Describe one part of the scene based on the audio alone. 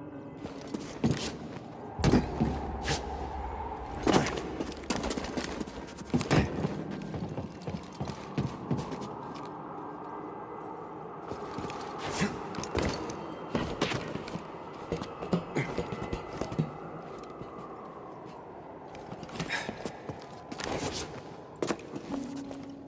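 Footsteps run and scuff on hard stone.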